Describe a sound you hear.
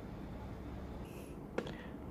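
A cardboard box knocks and rustles in hands.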